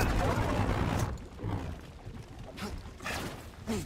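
A lightsaber hums and buzzes.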